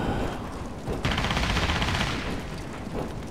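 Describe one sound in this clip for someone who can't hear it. A rifle rattles as it is lowered and carried.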